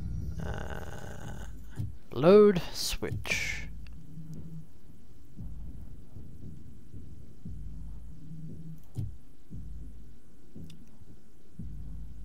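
A young man talks quietly and close to a microphone.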